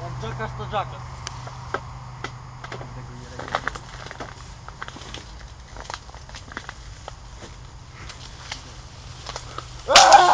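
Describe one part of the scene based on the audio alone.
Leaves rustle as a boy climbs through a tree.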